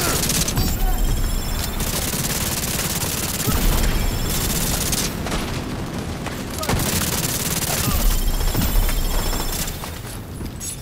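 Rifles fire in rapid, loud bursts.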